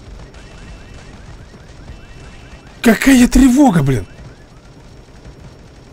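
Guns fire in rapid, repeated shots.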